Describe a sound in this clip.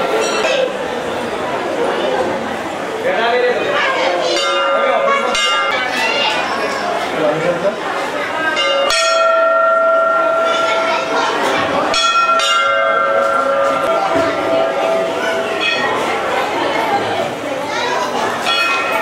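A crowd of men and women chants prayers together.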